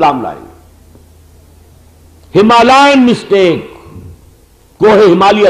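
An elderly man speaks forcefully into a microphone, in short emphatic bursts.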